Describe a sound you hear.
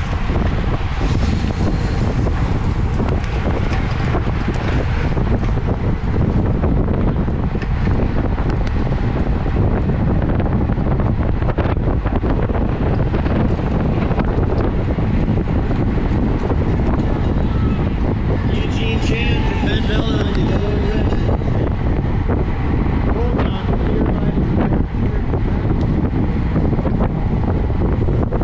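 Strong wind roars steadily past the microphone at speed.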